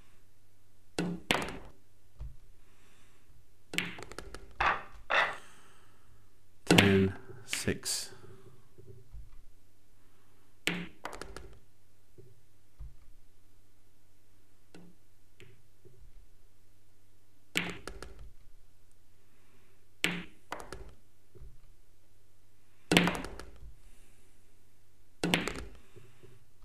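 Pool balls click sharply against each other.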